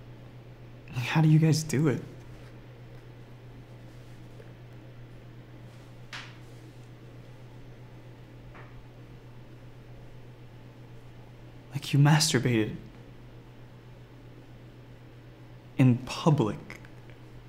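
A young man speaks calmly nearby in short phrases.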